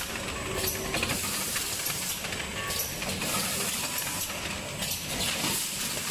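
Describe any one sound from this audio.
Air valves on a machine hiss and click in quick bursts.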